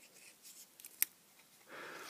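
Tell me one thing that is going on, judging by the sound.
A small plastic connector clicks as it is handled.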